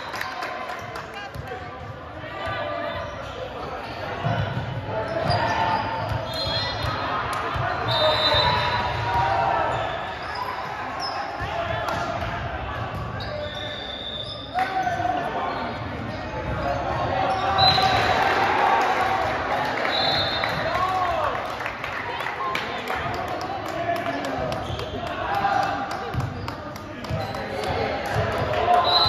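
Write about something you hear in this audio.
Young men and boys chatter and call out across a large echoing gym.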